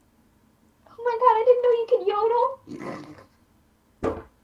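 A girl laughs over an online call.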